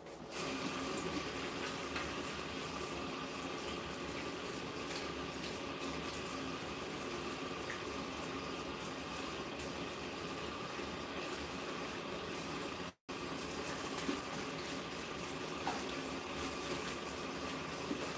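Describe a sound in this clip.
Water sprays steadily from a shower head onto hair.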